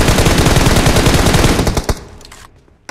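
An assault rifle fires.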